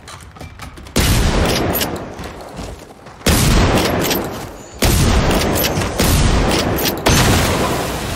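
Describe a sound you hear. A shotgun fires loud booming blasts that echo away.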